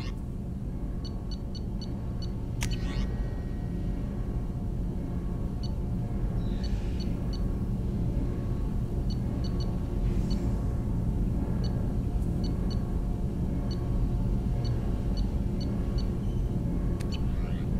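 Short electronic menu beeps chirp again and again.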